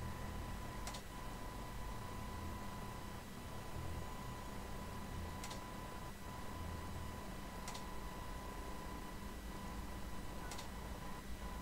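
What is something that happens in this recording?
Small fuses click into place, one at a time.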